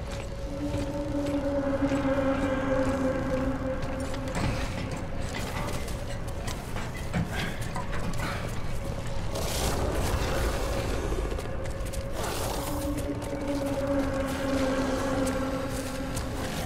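Heavy boots thud slowly on a metal floor.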